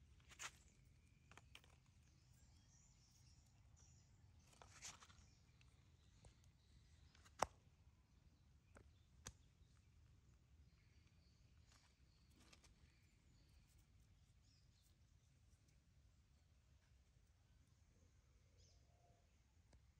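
A thin branch creaks and rattles as a small monkey climbs it.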